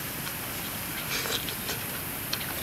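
A young man slurps noodles.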